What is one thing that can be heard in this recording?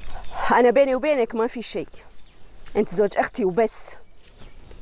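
A young woman speaks close by, sharp and agitated.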